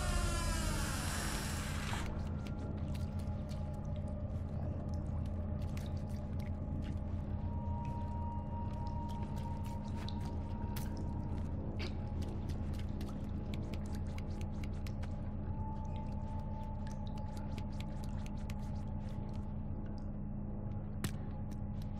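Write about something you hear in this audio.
Small footsteps patter on a tiled floor.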